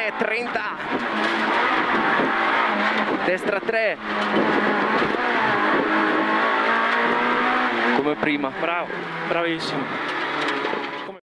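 A rally car engine roars loudly, revving up and down as gears change.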